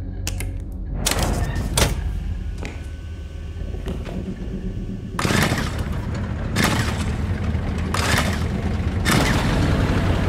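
A generator's pull cord is yanked sharply several times.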